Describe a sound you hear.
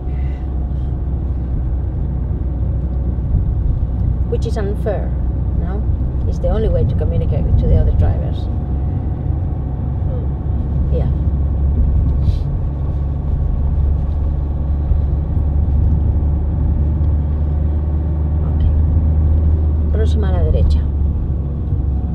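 A car engine hums steadily from inside the car as it drives slowly.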